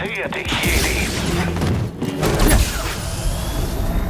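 An energy blade hums and swooshes.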